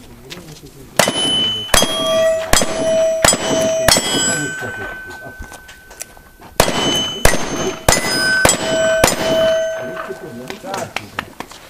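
Steel targets ring with a metallic clang when hit.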